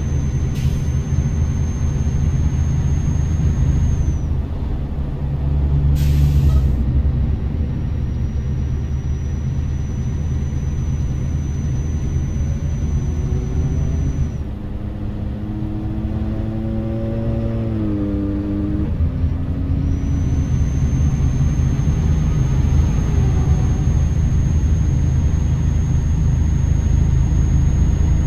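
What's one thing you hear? Tyres roll on the road with a steady hum.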